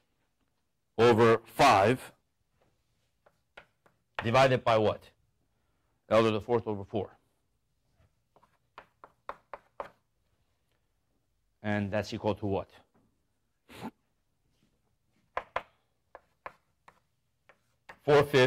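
A young man lectures calmly, in bursts with pauses.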